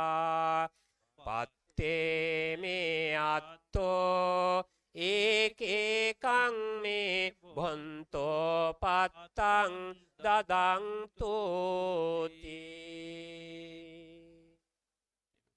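Monks chant together in deep voices through a microphone and loudspeaker, outdoors.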